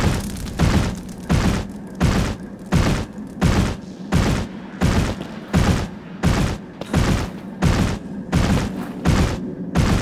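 Heavy footsteps thud rapidly and evenly on stone as a large creature runs.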